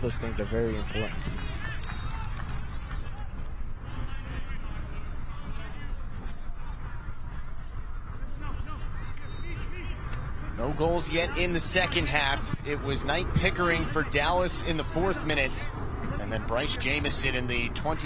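A crowd of spectators murmurs outdoors.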